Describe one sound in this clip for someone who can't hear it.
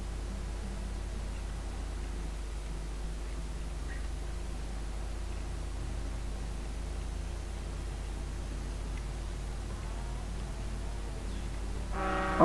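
A heavy truck engine hums steadily as the truck drives along.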